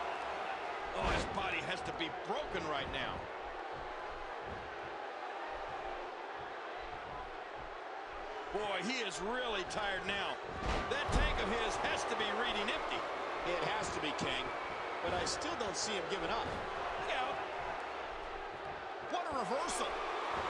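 Bodies slam hard onto a wrestling ring mat with heavy thuds.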